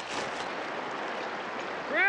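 River water flows and ripples.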